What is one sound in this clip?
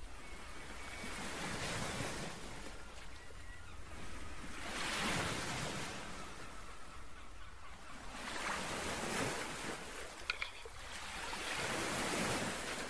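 Water laps gently against rocks outdoors.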